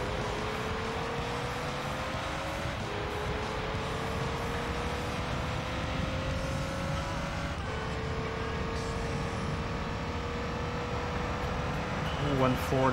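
A racing car engine whines steadily, climbing in pitch and dropping at each gear change.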